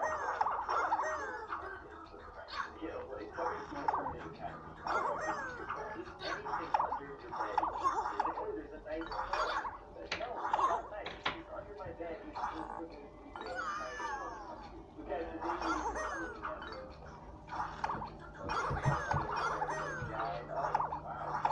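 Bright game sound effects chime and whoosh through a small speaker.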